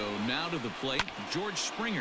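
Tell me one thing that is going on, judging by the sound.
A baseball pops sharply into a catcher's mitt.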